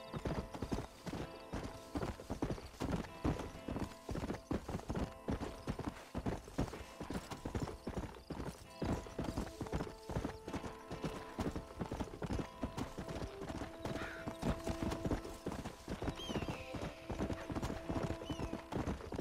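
A horse's hooves thud steadily on dry ground at a gallop.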